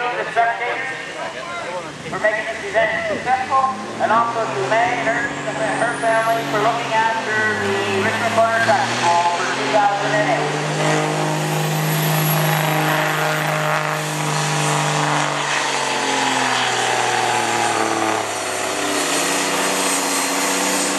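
A diesel truck engine roars and strains under heavy load.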